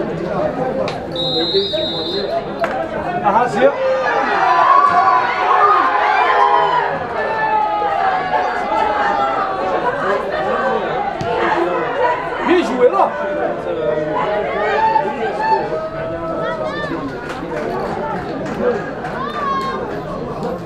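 Football players shout to each other across an open pitch.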